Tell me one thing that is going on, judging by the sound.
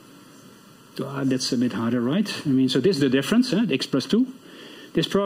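A man speaks calmly through a microphone, as if giving a lecture.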